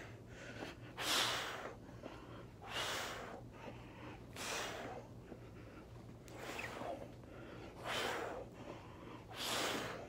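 A man breathes out hard and heavily in regular bursts, close by.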